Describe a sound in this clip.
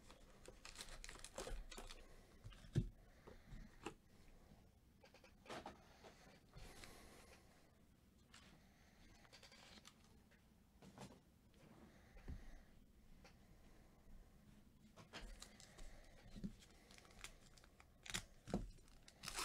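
Foil card packs crinkle and rustle as they are handled.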